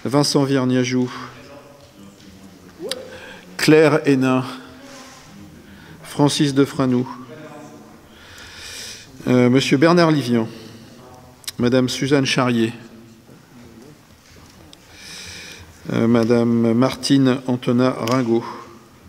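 A man speaks calmly through a microphone in a large hall, in short bursts with pauses.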